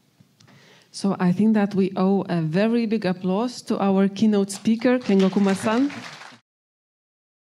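A woman speaks into a microphone over loudspeakers in a large hall.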